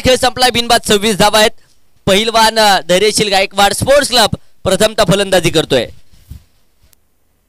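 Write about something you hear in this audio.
A man commentates through a microphone, speaking quickly and with animation.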